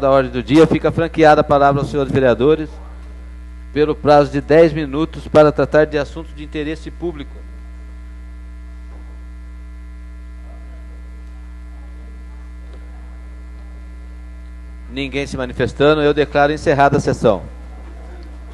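A man speaks steadily into a microphone, heard through a loudspeaker in a large room.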